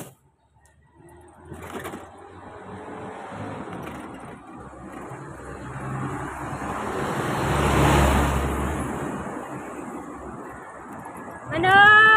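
A vehicle's engine approaches, rumbles past close by and fades.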